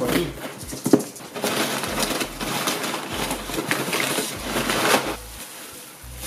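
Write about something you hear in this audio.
Paper and packing material rustle and crinkle as they are pulled out.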